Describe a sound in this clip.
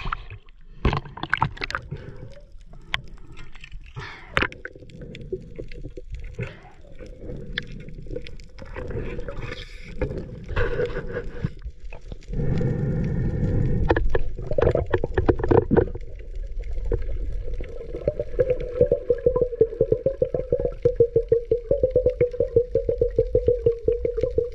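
Muffled underwater rumbling and crackling go on throughout.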